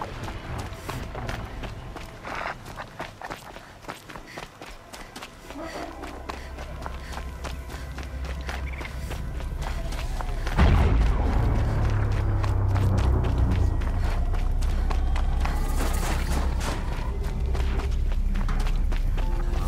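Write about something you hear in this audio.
Footsteps crunch through deep snow.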